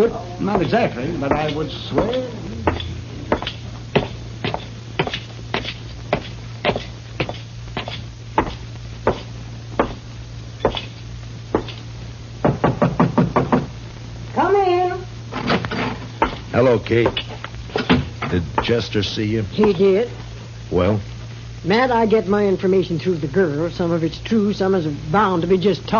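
A radio plays a crackly old broadcast.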